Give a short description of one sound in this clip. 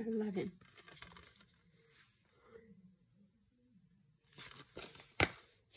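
A plastic case rattles and clicks in hands.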